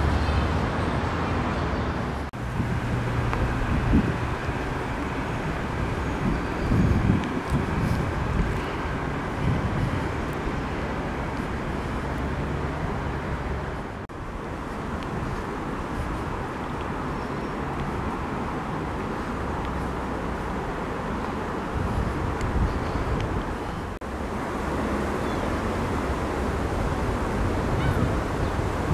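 Wind gusts outdoors and rustles the leaves of trees.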